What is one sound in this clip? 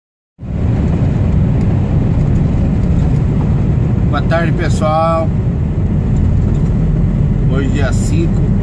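A vehicle's tyres roar steadily on the road.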